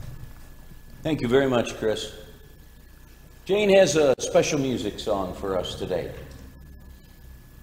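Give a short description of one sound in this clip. An elderly man speaks calmly over a microphone in an echoing room.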